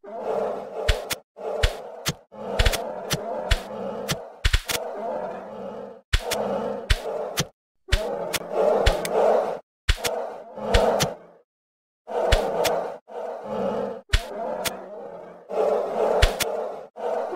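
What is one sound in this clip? Arrows strike with sharp thuds.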